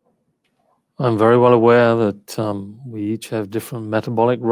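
An older man speaks calmly through a headset microphone on an online call.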